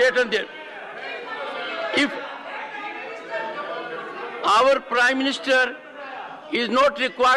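An elderly man speaks firmly into a microphone.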